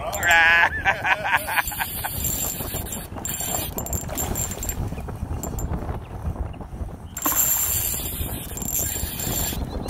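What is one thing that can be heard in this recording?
A small fish splashes at the surface of the water.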